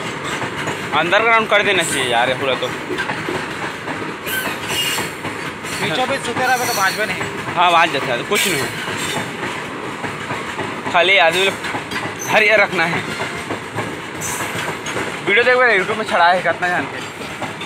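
Train wheels squeal on the rails now and then.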